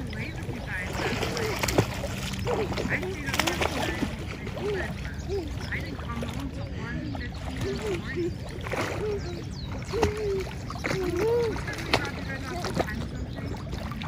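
Young girls chatter and giggle softly.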